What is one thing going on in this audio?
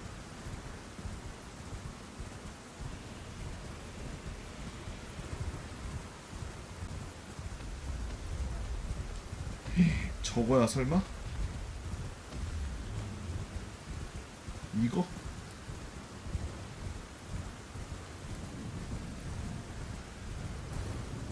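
A horse's hooves gallop over grass.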